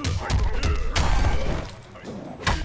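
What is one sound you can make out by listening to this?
Stone shatters and debris crashes.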